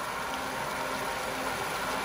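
Water hisses as it sprays from a nozzle.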